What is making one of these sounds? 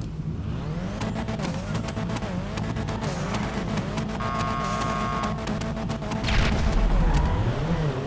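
A car exhaust pops and crackles.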